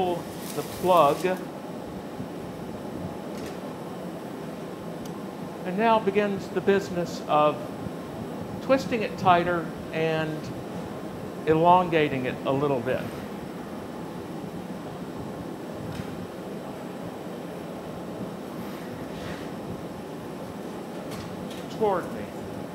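A glass furnace roars steadily.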